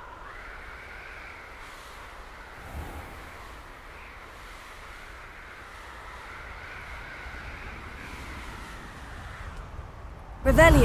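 Wind rushes steadily past a rider flying on a broom.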